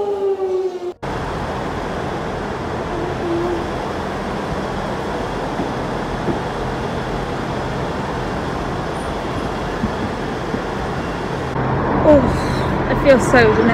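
A train engine hums steadily in a large echoing hall.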